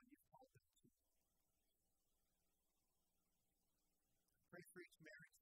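An electric guitar plays softly.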